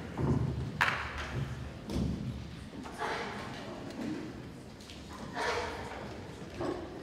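A string orchestra plays.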